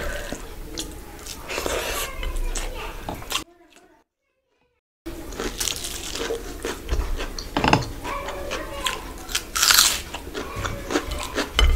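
A young woman chews food with her mouth close to a microphone.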